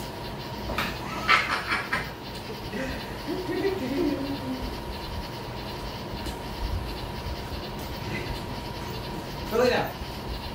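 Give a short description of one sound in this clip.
A man talks to a dog in a friendly voice nearby.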